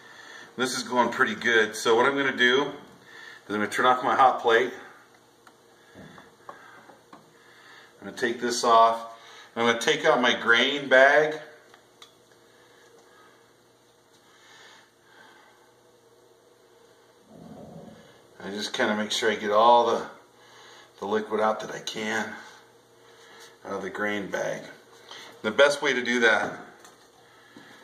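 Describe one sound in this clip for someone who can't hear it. A middle-aged man talks calmly and explains, close by.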